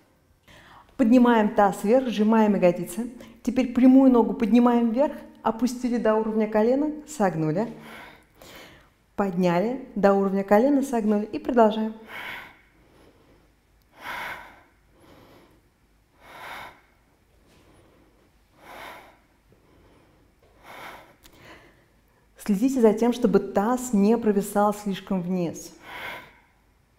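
A young woman speaks calmly and clearly, as if giving instructions, close to a microphone.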